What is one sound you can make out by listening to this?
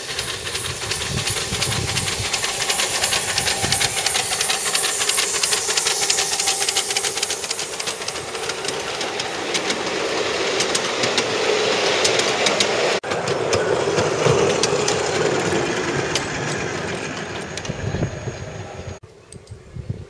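Small train wheels clatter along the rails.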